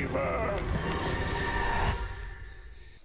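A magical energy blast hisses and crackles.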